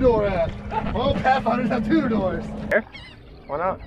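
A man talks loudly with animation nearby.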